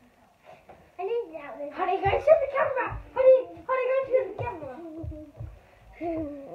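A young boy talks with animation.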